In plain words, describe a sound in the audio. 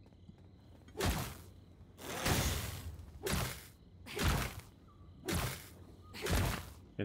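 Sharp blows strike in a brief fight.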